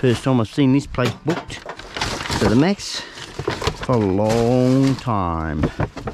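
A paper envelope crackles as it is torn open.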